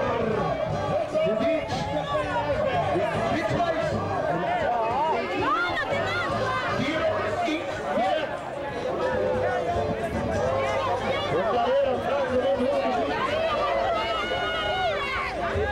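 Men shout to each other across open ground.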